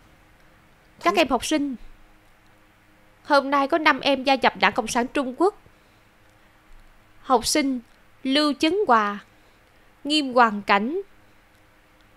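A woman speaks clearly and formally, announcing to a group.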